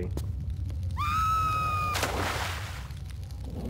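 Water splashes as a body plunges in.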